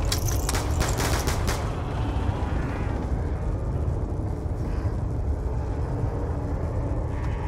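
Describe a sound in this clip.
Wind blows in a low, steady rumble outdoors.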